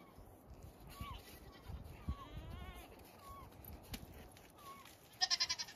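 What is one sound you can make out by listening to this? A goat's hooves thud and crunch on packed snow.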